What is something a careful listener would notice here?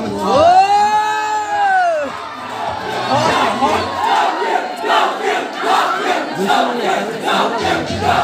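Music with a singing voice plays loudly through loudspeakers.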